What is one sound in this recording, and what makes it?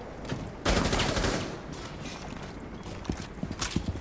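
A rifle clatters as it is raised and readied.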